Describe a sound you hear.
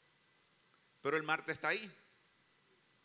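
A middle-aged man speaks briefly and with animation into a microphone in a reverberant hall.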